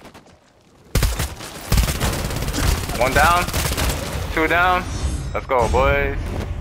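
Rapid gunfire rattles loudly nearby.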